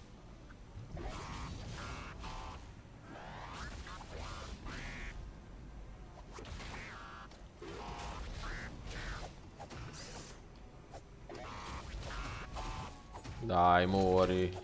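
Electronic laser shots zap in short bursts.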